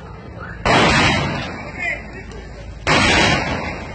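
A firework fountain hisses and crackles.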